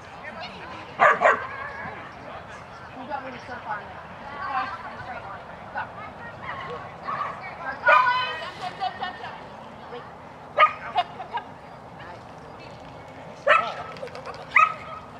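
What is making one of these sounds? A dog barks excitedly.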